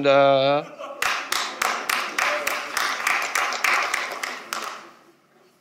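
An audience claps and applauds in a large hall.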